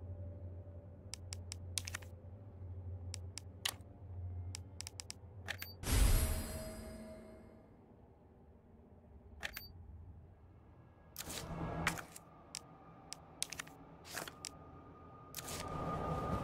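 Menu selections click sharply, one after another.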